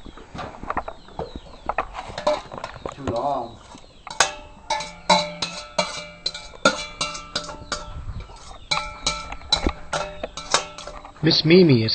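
Metal utensils clang and scrape against a metal pot, ringing after each strike.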